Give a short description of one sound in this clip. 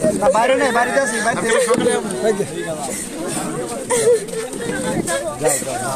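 Several men talk close by, overlapping one another.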